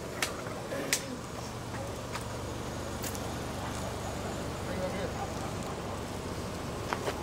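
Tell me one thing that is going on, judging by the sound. A car engine idles nearby with a low steady hum.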